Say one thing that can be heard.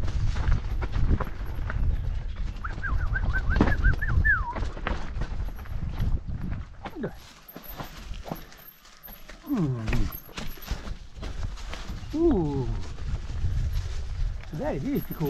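Bicycle tyres crunch and roll over a dirt trail.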